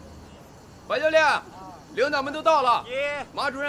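A man calls out loudly outdoors.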